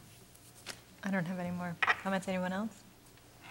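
A woman speaks briefly into a microphone in a large room.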